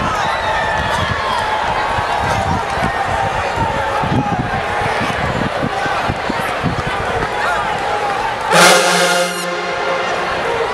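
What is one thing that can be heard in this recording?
A large marching band plays loud brass music outdoors.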